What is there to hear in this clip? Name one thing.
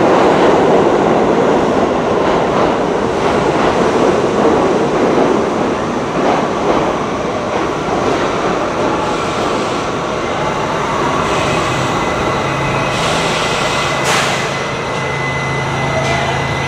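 A subway train rushes into the station with a loud rumble.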